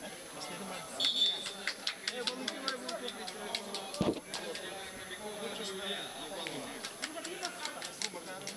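People nearby clap their hands.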